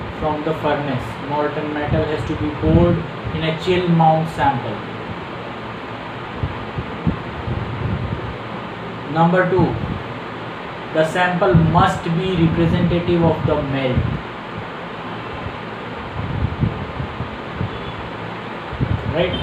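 A middle-aged man speaks calmly and with emphasis, close to a microphone.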